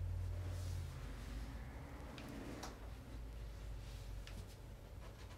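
Clicks and knocks sound as a man adjusts a light stand.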